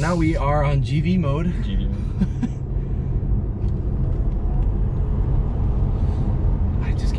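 A car's tyres and engine hum steadily from inside the car.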